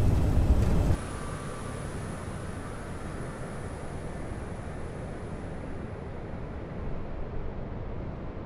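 A jet airliner descends with a whining engine hum that slowly fades away.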